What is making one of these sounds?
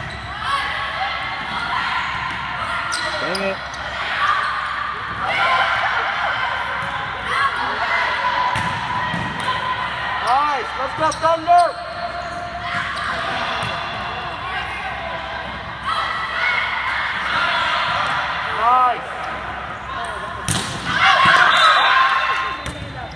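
Young women shout and call out to each other.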